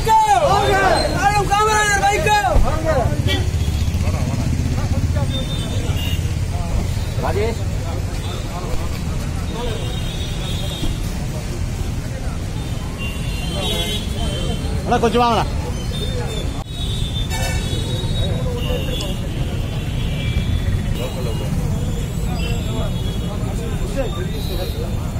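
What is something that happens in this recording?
A crowd of men talk and call out all around, outdoors.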